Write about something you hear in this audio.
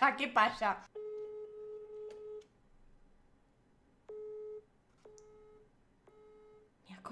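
A phone beeps several times.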